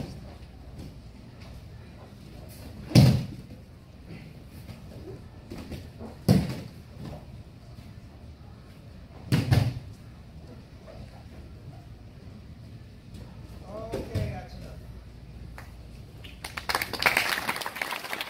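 Bare feet shuffle and slap on a mat.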